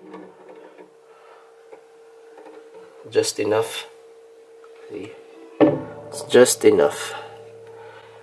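A guitar knocks softly against a wooden panel as it is handled.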